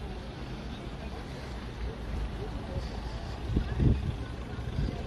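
A crowd murmurs outdoors in the distance.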